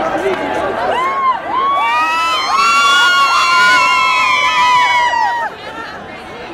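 Young women scream and cheer loudly close by.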